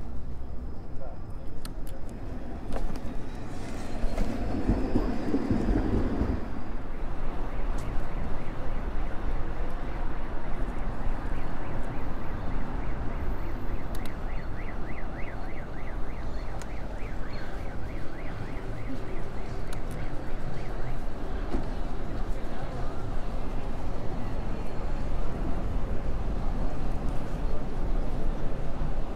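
A bicycle's tyres hum on the road.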